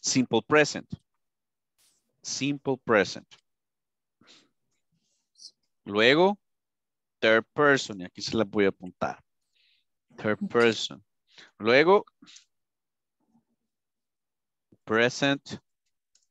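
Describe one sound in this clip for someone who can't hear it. A man speaks calmly in short phrases over an online call, heard through a headset microphone.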